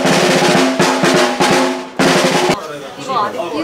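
A marching band plays loudly with brass.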